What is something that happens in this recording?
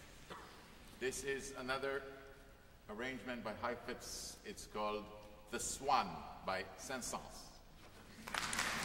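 A middle-aged man speaks to an audience in a large echoing hall.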